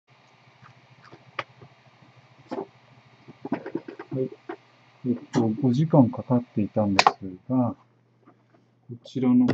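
A 3D printer hums and whirs steadily as it prints.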